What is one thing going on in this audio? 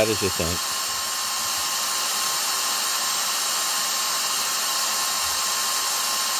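A handheld vacuum cleaner's motor whirs loudly and steadily close by.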